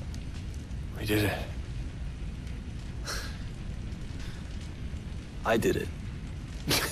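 A young man speaks calmly.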